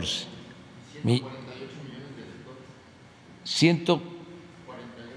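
A middle-aged man speaks with animation from a distance.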